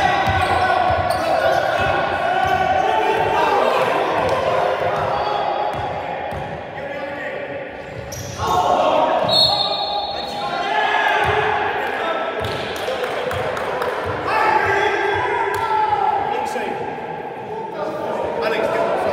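Men shout and call out across an echoing hall.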